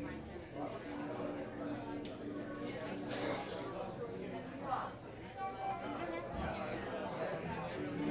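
A keyboard plays chords.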